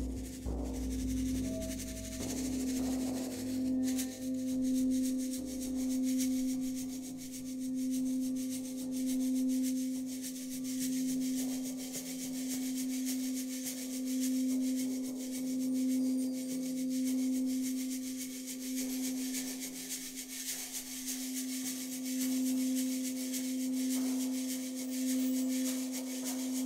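A singing bowl rings with a steady, slowly pulsing hum.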